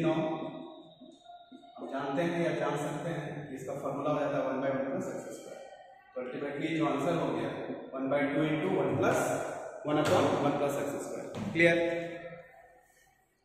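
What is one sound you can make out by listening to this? A man speaks steadily close by.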